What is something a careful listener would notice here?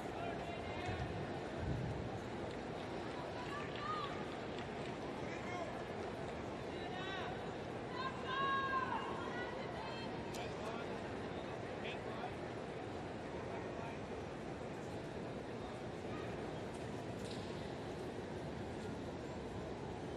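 A large crowd murmurs steadily in a wide open stadium.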